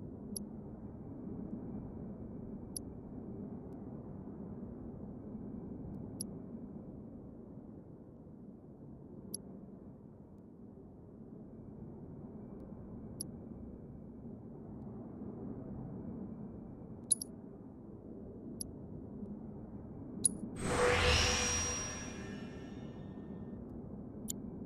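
Short soft menu blips sound every few seconds.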